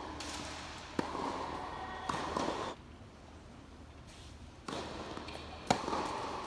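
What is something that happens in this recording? Tennis balls are struck with rackets, echoing in a large hall.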